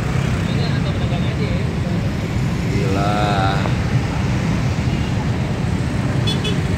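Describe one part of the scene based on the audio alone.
Car and motorbike engines rumble steadily in slow traffic close by.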